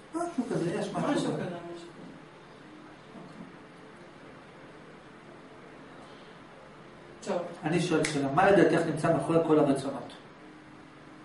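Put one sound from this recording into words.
A young man speaks calmly and close into a microphone, pausing between phrases.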